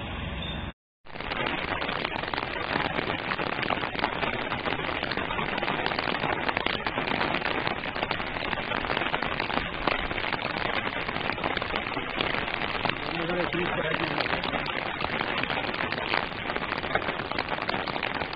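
Floodwater rushes over a road outdoors.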